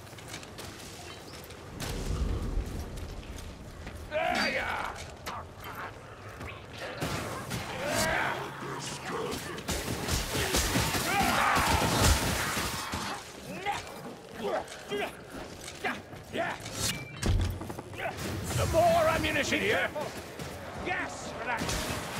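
Creatures snarl and shriek close by.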